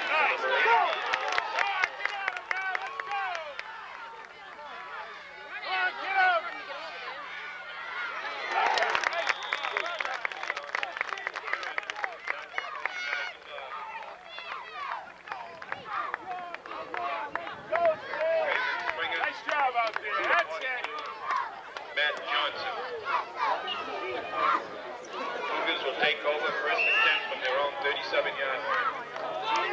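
Young children shout and call out outdoors.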